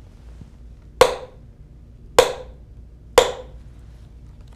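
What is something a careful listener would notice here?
A hammer knocks sharply on a wooden post three times, each blow ringing briefly.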